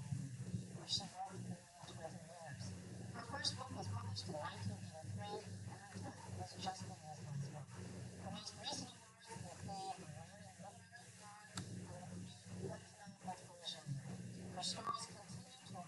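A middle-aged woman speaks with animation, heard through a small loudspeaker.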